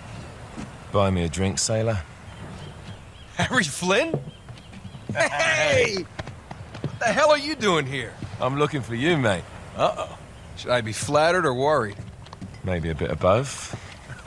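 A young man speaks casually and warmly.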